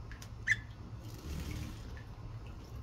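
A budgerigar's wings flutter briefly.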